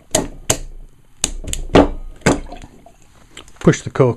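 A cork squeaks and pops out of a bottle's neck.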